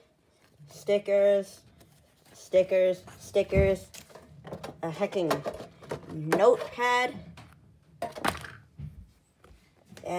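Stiff card rustles and slides against a metal tin.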